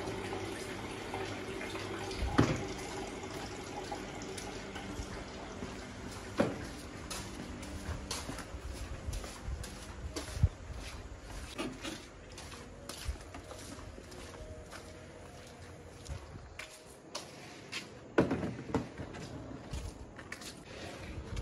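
Footsteps shuffle on concrete.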